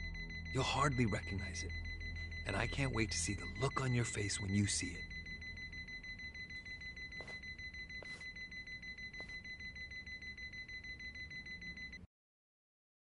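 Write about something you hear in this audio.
A steady electronic beeping repeats rapidly.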